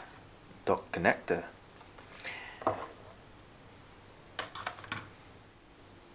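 Cardboard box parts knock and rustle as they are handled.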